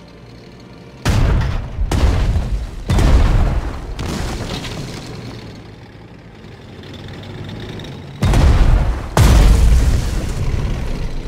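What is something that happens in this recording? Heavy explosions boom in bursts.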